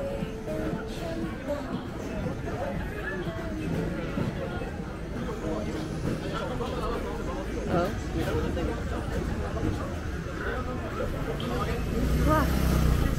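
A crowd of people chatters on a busy street outdoors.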